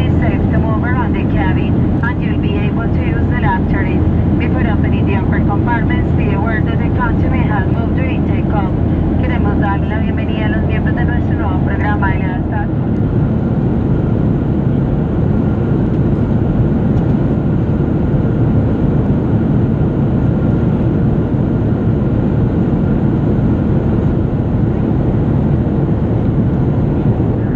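A jet engine roars steadily, heard from inside an airliner cabin.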